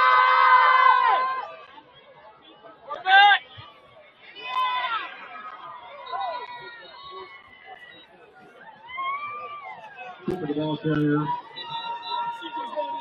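A crowd shouts and cheers outdoors at some distance.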